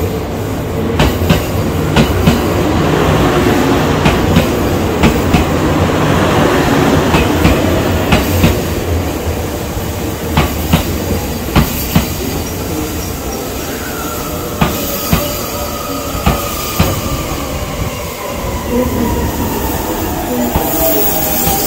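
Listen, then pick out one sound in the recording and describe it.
A train rumbles past along a platform.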